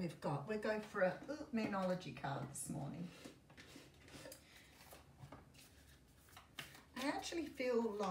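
Cards shuffle and slap together in a woman's hands.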